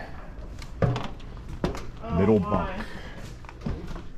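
Footsteps thud on a hollow floor.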